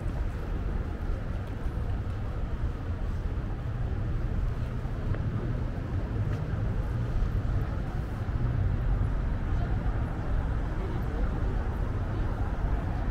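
Car tyres roll past on the road.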